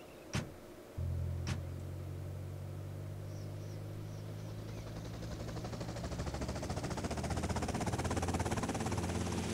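A helicopter engine starts up and hums steadily, its rotor whirring louder and faster.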